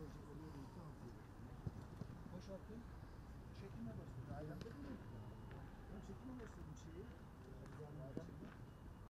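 Men talk and call out at a distance outdoors.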